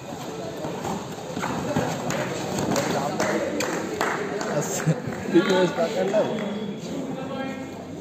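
Players' feet thump and scuffle on a padded mat.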